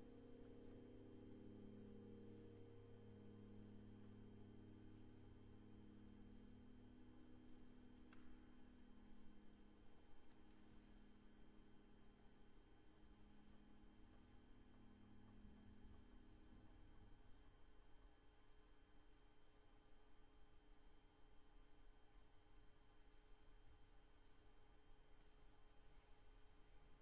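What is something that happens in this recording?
A piano plays slow, soft sustained notes.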